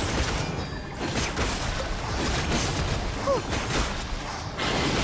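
Fiery blasts whoosh and crackle in a fast game battle.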